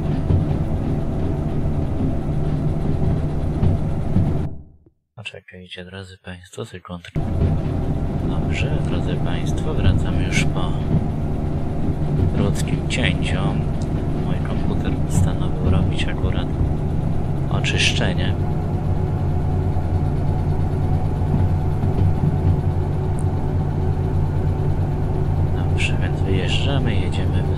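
A diesel locomotive engine drones, heard from inside the cab.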